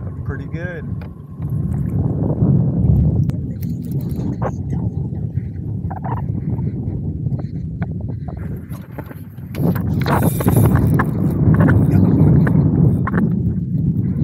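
Small waves lap against a kayak's hull.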